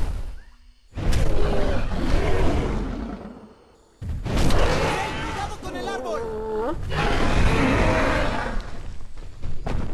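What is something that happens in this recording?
A huge beast roars and growls loudly.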